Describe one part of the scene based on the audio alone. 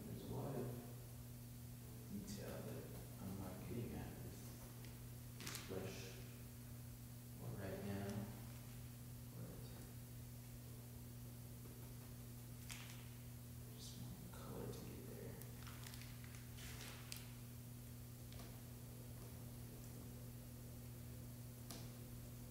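A paintbrush brushes and dabs softly on canvas.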